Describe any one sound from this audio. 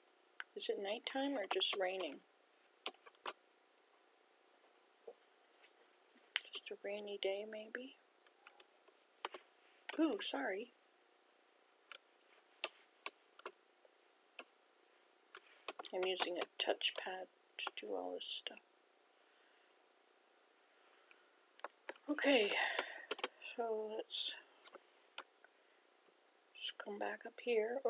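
An elderly woman talks calmly and close to a microphone, in short bursts.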